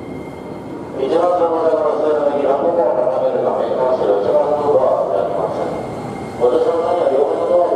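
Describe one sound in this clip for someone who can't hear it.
A train's electric motors whine loudly as it slows to a stop.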